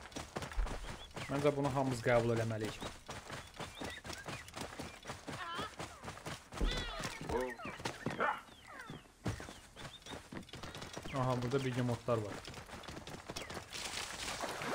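A horse's hooves thud rhythmically as it gallops over ground.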